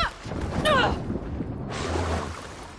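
Sound turns muffled as a horse sinks underwater.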